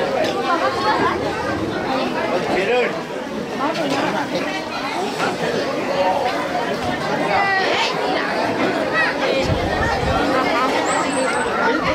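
A crowd of women and children chatters all around, close by.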